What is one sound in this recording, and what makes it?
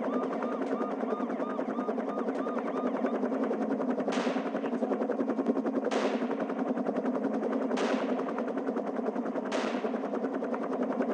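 A helicopter's rotor blades chop steadily overhead.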